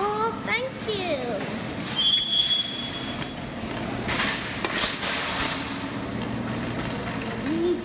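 A metal shopping cart rattles as it rolls across a hard floor.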